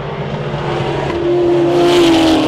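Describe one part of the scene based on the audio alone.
A racing car roars past close by.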